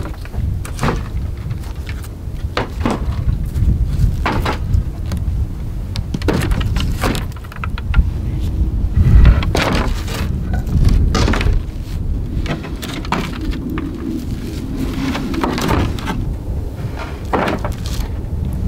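Wooden shingles and stones knock and scrape on a roof.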